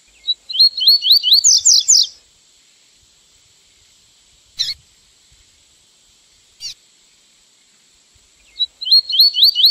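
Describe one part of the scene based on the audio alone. A small songbird sings a quick series of sharp, rising whistled notes.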